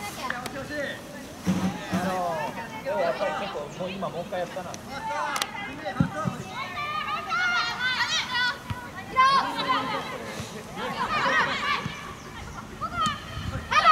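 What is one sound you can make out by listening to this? Young players shout and call out to one another, heard from a distance outdoors.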